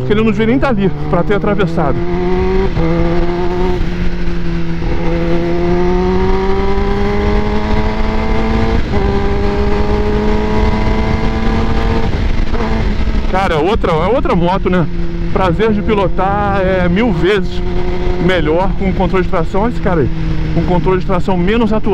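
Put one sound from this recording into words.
A motorcycle engine hums and rises in pitch through gear changes.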